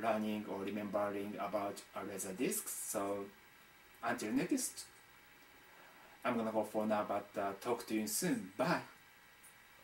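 A young man talks calmly close to a microphone.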